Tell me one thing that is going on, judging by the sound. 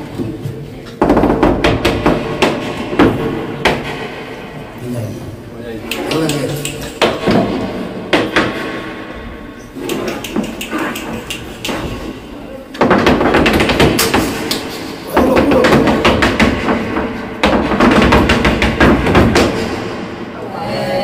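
A dancer's heels stamp rapidly on a wooden stage.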